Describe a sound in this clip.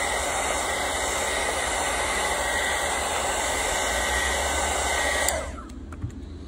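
A heat gun blows with a loud steady whoosh.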